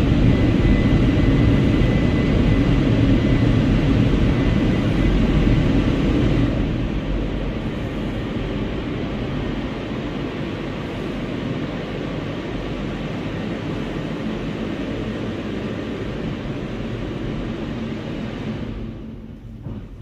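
Water sprays and drums hard on a car's roof and windows, heard from inside the car.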